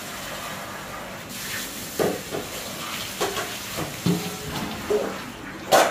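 Water splashes in a metal pot.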